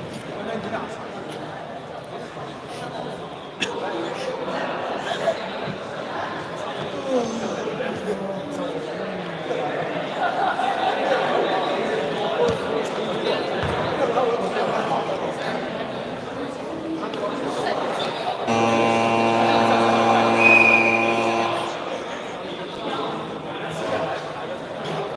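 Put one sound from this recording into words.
A crowd of young people chatter and call out in a large echoing hall.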